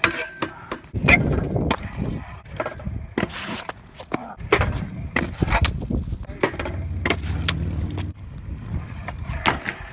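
A scooter clatters onto a wooden box.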